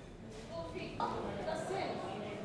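A woman teacher speaks to a class in a room.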